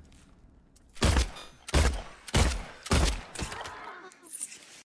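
A young man shouts loudly in fright.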